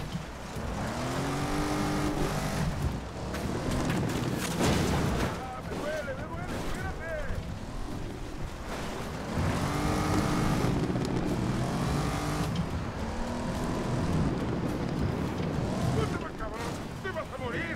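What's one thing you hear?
A car engine revs hard and roars as the car races along.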